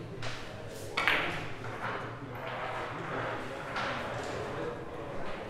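Billiard balls clack against each other and roll on the table.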